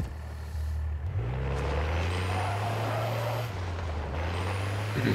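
A vehicle engine revs and hums as it drives off.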